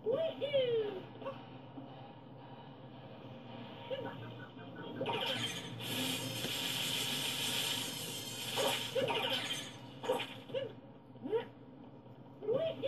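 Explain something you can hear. Electronic game sounds with bright chirps and whooshes play from a television loudspeaker.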